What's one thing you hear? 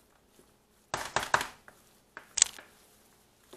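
A utensil clinks against a glass bowl.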